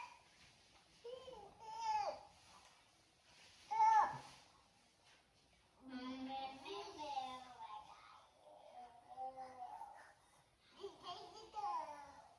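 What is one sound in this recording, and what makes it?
A child talks with animation close by.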